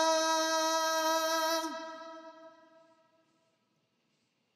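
A man sings a long held note into a microphone, then the note fades away.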